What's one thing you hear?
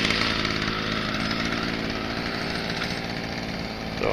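A leaf blower roars steadily close by.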